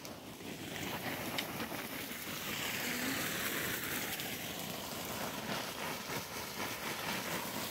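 Wind rustles through leafy bushes outdoors.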